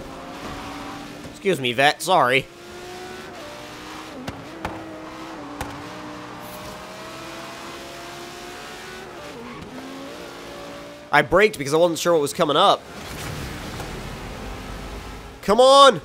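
A sports car engine roars steadily as the car speeds along.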